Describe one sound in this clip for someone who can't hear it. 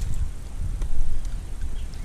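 A paddle dips and splashes in water.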